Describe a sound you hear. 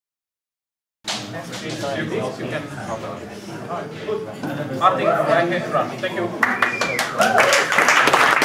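A man speaks to an audience through a microphone in an echoing room.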